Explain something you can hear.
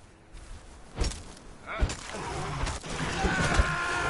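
A spear strikes a creature with sharp thuds.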